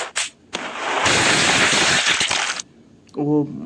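A body crashes and splatters with a loud wet burst.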